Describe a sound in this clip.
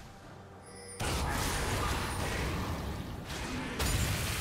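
Blades clash and spells burst in a fast fight.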